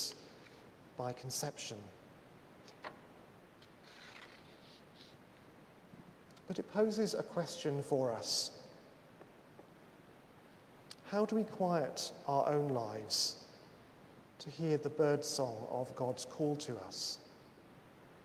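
A man speaks slowly and solemnly in a large echoing room, pausing between phrases.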